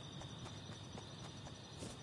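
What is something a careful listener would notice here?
Footsteps patter on grass as a game character runs.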